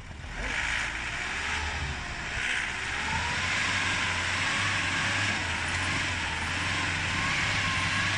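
Wind blows hard outdoors.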